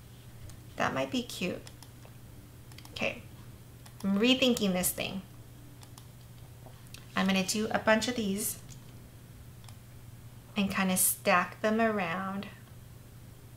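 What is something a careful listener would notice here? A woman talks calmly into a microphone, in short bursts.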